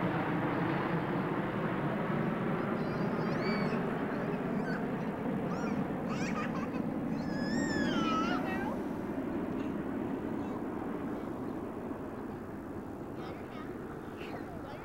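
A jet plane roars loudly overhead and slowly fades.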